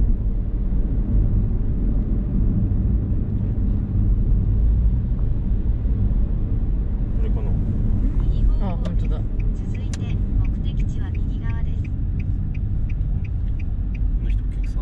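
A car engine hums steadily with road rumble, heard from inside the moving car.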